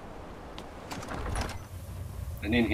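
A heavy stone door grinds open with a deep rumble.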